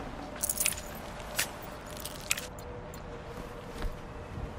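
Leaves and brush rustle as someone crawls through undergrowth.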